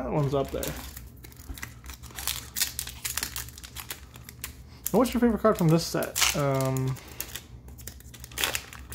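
A foil wrapper crinkles and rustles between hands.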